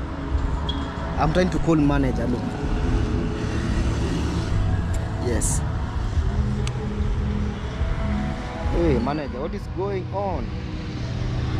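A young man speaks close by, calmly.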